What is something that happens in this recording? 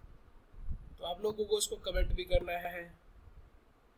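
An elderly man speaks calmly, heard through a small loudspeaker.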